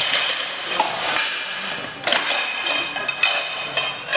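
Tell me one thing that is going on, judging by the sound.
Weight plates clank as a man loads a barbell.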